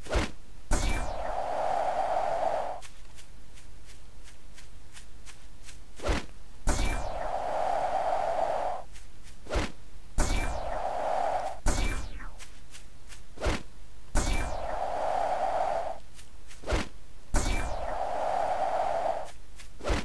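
Air rushes past in repeated loud whooshes.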